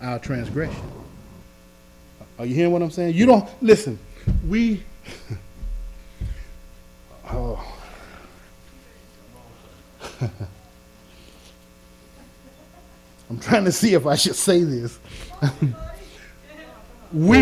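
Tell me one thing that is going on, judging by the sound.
A middle-aged man preaches with passion into a microphone, pausing between bursts of speech.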